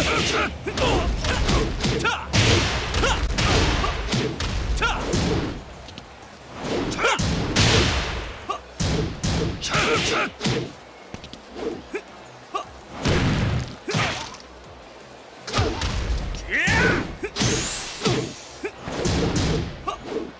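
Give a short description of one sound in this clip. Punches and kicks land with sharp thuds and cracks.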